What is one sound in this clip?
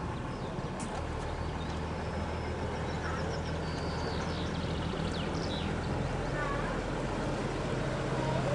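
A boat's engine idles with a low, steady hum.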